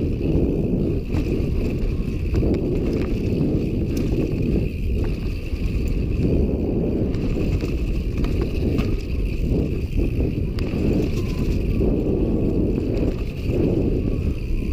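Wind rushes and buffets loudly past a fast-moving rider.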